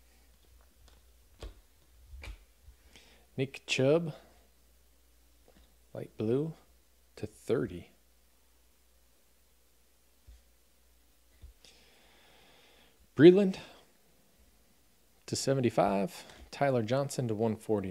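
Trading cards slide and rustle against each other.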